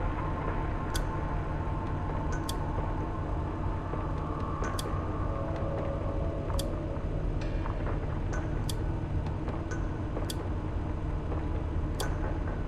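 A switch clicks sharply every couple of seconds.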